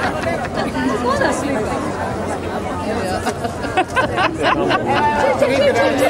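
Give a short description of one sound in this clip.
A crowd chatters all around outdoors.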